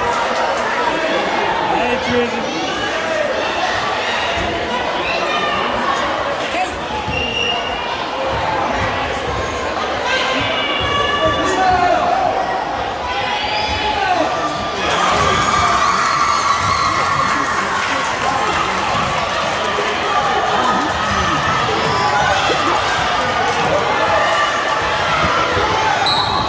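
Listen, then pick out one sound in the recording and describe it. Basketballs bounce on a wooden court.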